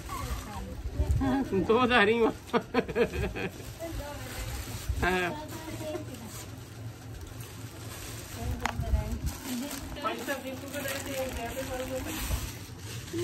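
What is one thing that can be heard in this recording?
A woman speaks and laughs nearby.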